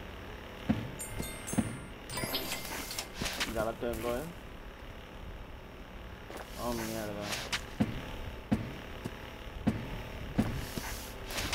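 Video game sound effects thump as a small character jumps and lands.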